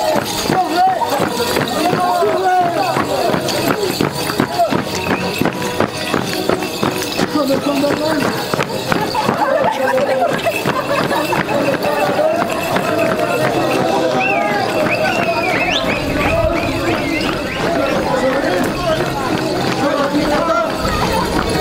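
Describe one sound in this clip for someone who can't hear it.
A crowd of men and women sing and call out together outdoors.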